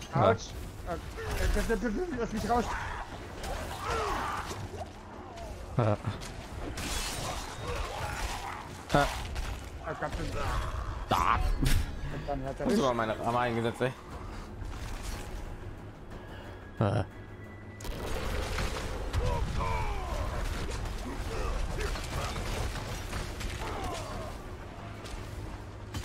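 Blows and spells crash and boom in a fight.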